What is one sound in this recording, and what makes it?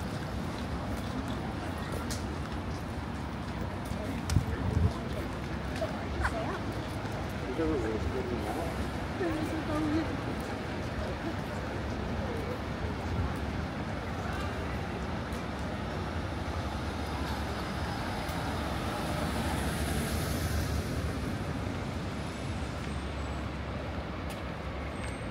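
Traffic and buses rumble steadily along a busy street outdoors.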